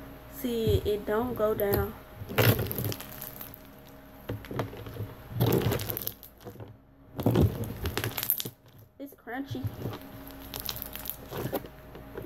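Slime squishes and crackles between fingers.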